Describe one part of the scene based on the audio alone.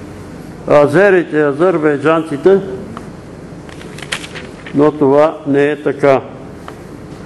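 An elderly man reads aloud slowly, in short phrases.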